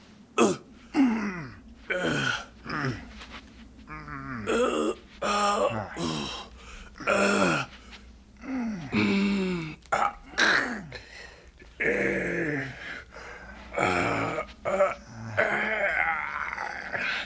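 A man chokes and gasps in a stranglehold.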